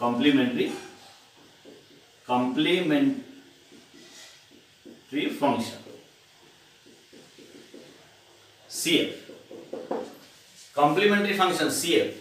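A man lectures calmly into a close microphone, in short phrases with pauses.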